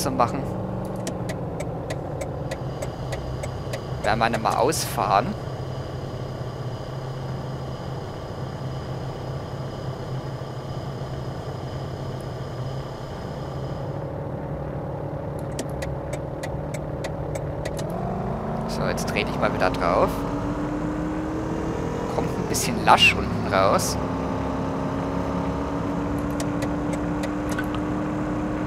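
A car engine accelerates, rising in pitch through the gears.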